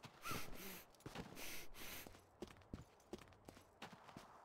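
Footsteps tread on grass and stone.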